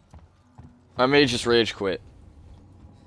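A young man speaks loudly and with animation into a close microphone.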